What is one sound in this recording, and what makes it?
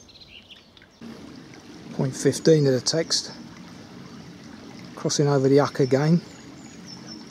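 A stream trickles and gurgles softly nearby.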